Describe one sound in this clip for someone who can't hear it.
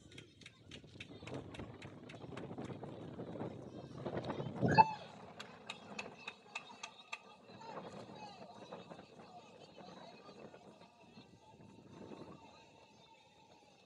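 Spectators cheer and shout outdoors.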